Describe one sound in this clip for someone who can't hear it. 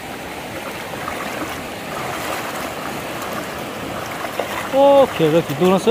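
Water splashes around feet wading through a stream.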